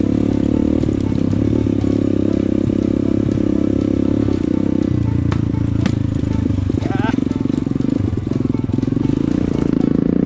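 A dirt bike engine rumbles steadily up close, rising and falling as the rider works the throttle.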